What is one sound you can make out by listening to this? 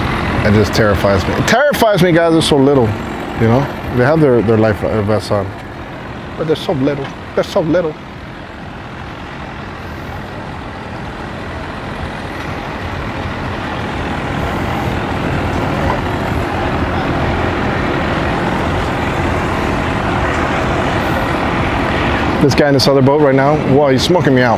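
An outboard motor idles and hums steadily nearby.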